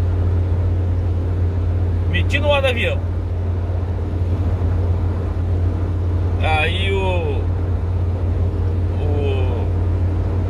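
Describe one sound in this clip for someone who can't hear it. A car engine hums steadily from inside the cabin.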